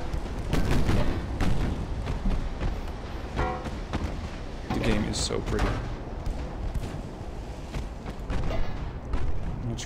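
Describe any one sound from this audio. Shells explode with deep rumbling blasts.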